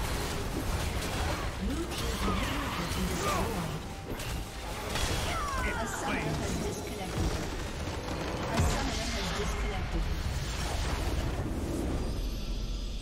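Spell effects crackle and blast in a busy game fight.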